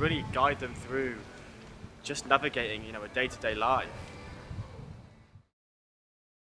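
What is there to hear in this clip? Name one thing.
A young man talks outdoors.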